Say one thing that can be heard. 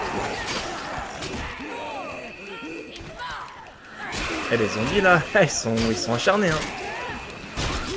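Heavy blows thud against bodies in a fight.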